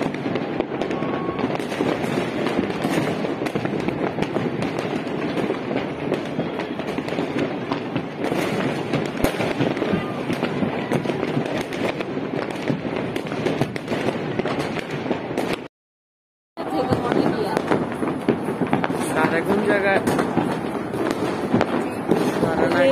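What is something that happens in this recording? Fireworks crackle and pop steadily in the distance outdoors.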